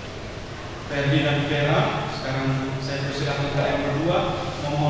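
A man reads aloud slowly through a microphone.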